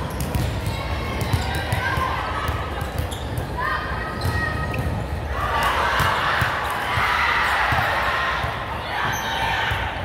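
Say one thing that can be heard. Young women chatter and call out across a large echoing hall.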